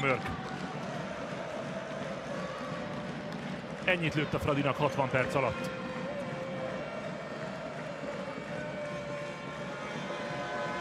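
A large crowd murmurs and chatters in an echoing arena.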